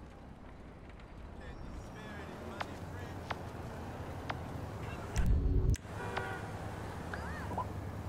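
Traffic hums faintly in a city street at night.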